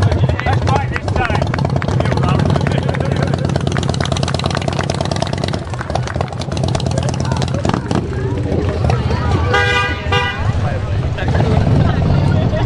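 A motorcycle engine idles with a deep, throbbing rumble and slowly pulls away.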